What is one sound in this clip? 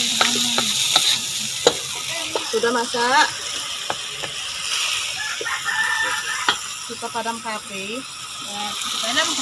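Greens sizzle and hiss in a hot pan.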